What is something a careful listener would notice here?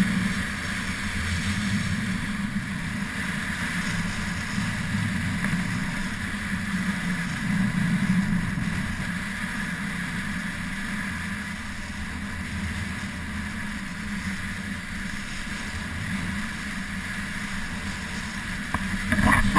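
Skis carve and scrape over groomed snow.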